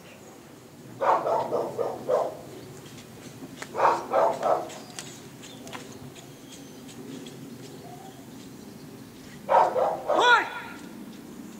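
A man calls out short, loud commands outdoors.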